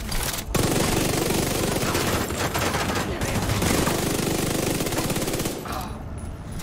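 Automatic gunfire rattles loudly.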